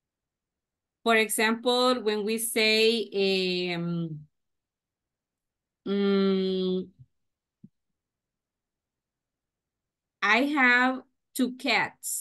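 A woman speaks with animation through a microphone, in short bursts with pauses.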